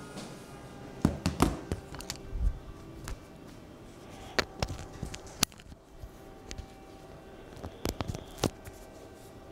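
A clip-on microphone rustles and thumps as it is handled.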